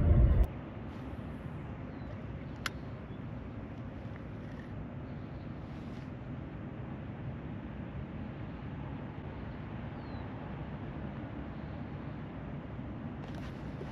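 A fishing reel whirs softly as a man winds in line.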